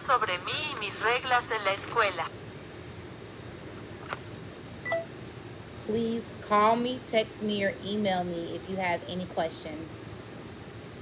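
A woman speaks calmly and close up.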